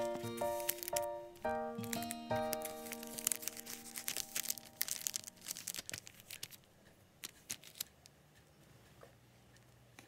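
A plastic wrapper crinkles as hands handle a package.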